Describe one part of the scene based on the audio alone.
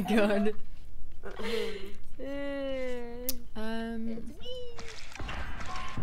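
A young woman sings and talks playfully into a close microphone.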